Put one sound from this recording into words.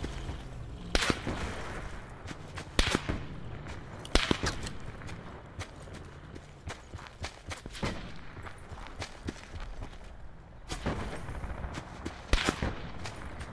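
A rifle fires loud, sharp shots.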